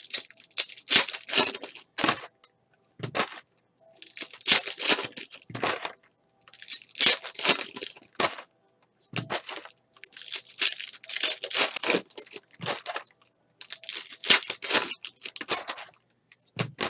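Foil trading card packs crinkle and tear as hands rip them open.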